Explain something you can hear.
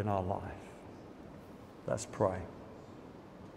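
A middle-aged man speaks briefly through a microphone in a large echoing hall.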